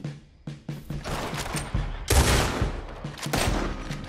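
A rifle fires loud shots in quick succession.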